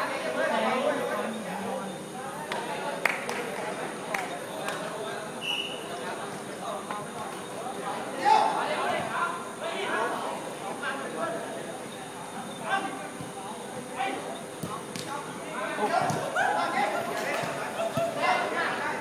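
Young men shout and call to each other outdoors.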